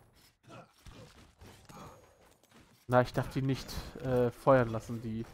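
A sword swishes and strikes in short, quick blows.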